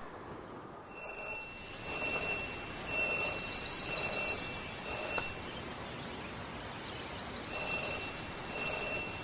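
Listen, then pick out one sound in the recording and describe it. An alarm clock beeps in short repeated bursts.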